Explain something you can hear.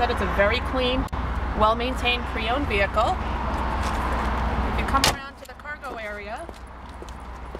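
A woman talks calmly close by.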